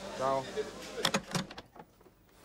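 A phone handset clatters onto its hook.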